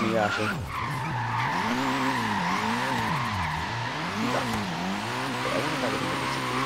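A car engine revs up and down over and over as a car drifts.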